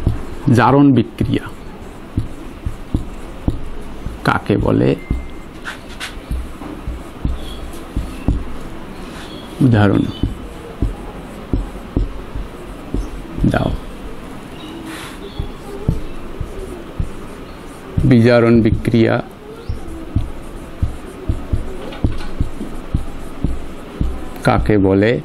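A man speaks calmly and slowly, close by.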